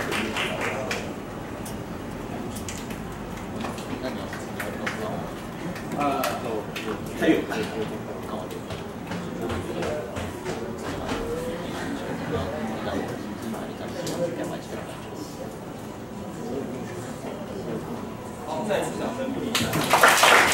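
A young woman speaks calmly into a microphone in a room with some echo.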